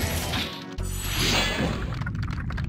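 Crystal shatters with a bright, ringing burst.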